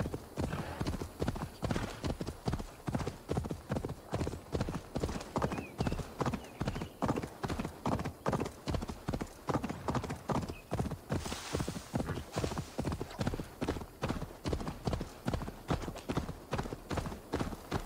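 Horse hooves pound rhythmically on dirt and stone at a gallop.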